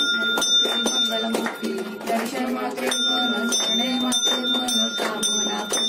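A group of men sings a devotional chant together nearby.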